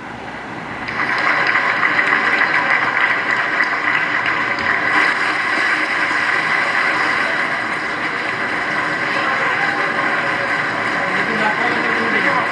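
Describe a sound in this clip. A crowd cheers and applauds through a television loudspeaker.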